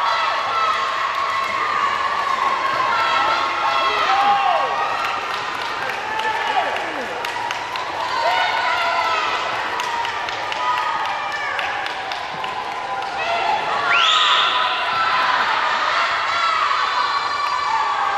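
A man shouts encouragement up close.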